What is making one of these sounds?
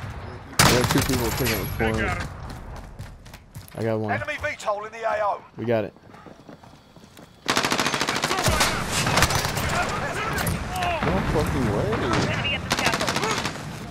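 A submachine gun fires in bursts.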